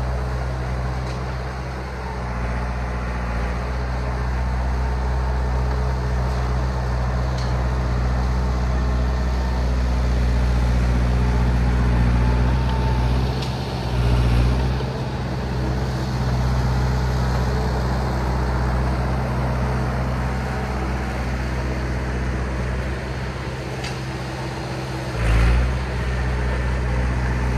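A bulldozer's diesel engine rumbles steadily nearby.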